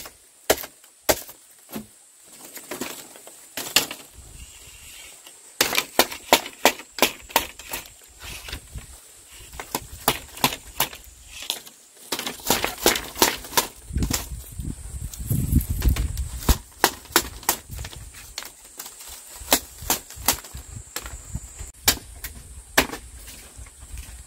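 A machete knocks and taps sharply against bamboo strips.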